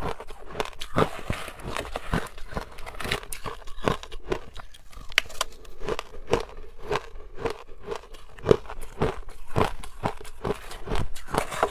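A metal spoon scrapes through ice in a plastic bowl.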